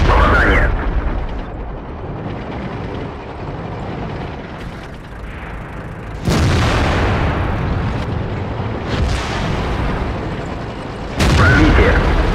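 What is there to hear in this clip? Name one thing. A tank cannon fires with heavy booming blasts.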